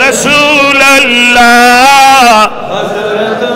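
A middle-aged man chants in a long, loud, drawn-out voice through a microphone.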